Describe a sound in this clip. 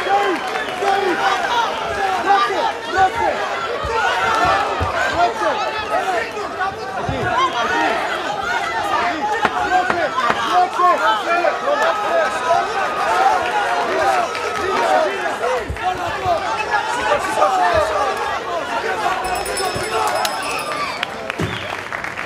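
A crowd shouts and cheers loudly throughout.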